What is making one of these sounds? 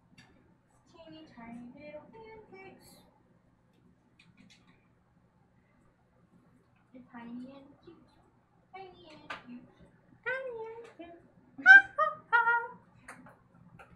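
A young woman talks casually over an online call, close by.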